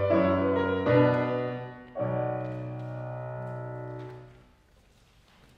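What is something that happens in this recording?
A piano plays final ringing chords in a large room.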